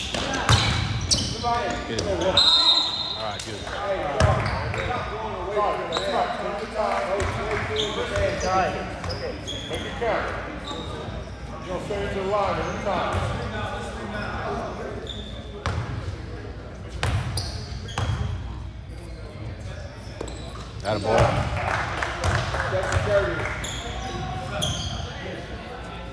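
Young people shout and call out with excitement nearby.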